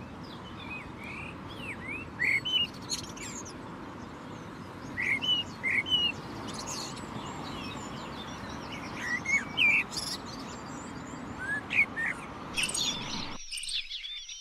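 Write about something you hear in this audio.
A blackbird sings rich, fluting phrases close by.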